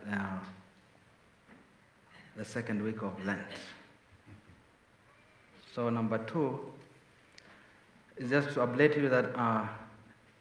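A man speaks calmly in short phrases, heard through a microphone in a large echoing room.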